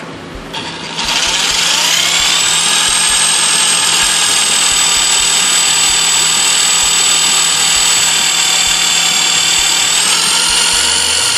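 A power drill whirs steadily as it bores into metal.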